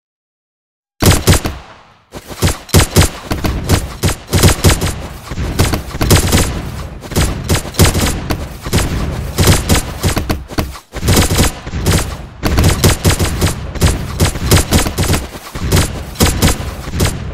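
Game weapons fire in rapid bursts of shots.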